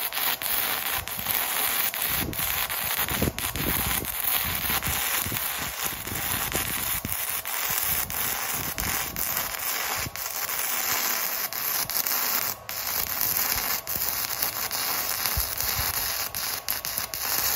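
Sparks pop and snap from the weld.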